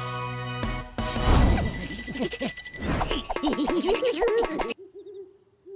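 A cartoon character laughs gleefully.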